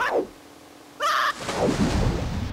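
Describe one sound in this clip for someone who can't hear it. A game character splashes into water.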